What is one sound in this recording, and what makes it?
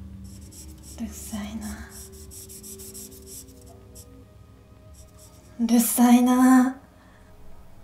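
A young woman speaks quietly in a strained voice, close by.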